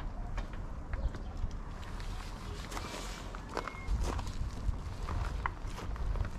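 Dishes and utensils clink softly on a table.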